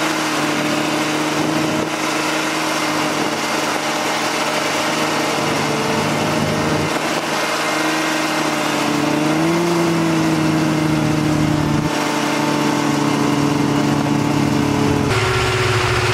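A snowmobile engine drones loudly and steadily up close.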